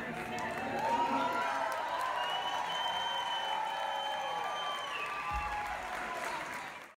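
A band of strings and drums plays along.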